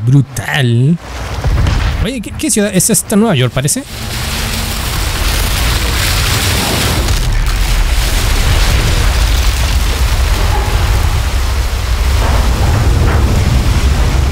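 Rough water surges and crashes in heavy waves.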